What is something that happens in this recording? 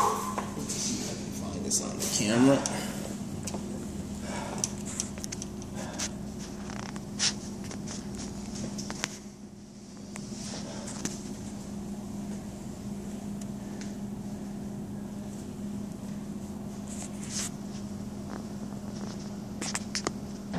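Footsteps thud on a rubber floor.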